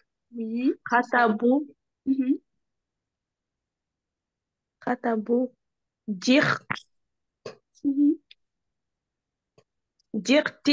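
A young woman speaks slowly and clearly over an online call, pausing between words.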